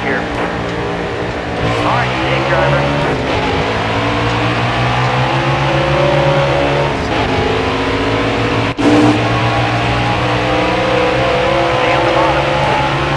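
Race car engines roar loudly and steadily, shifting in pitch.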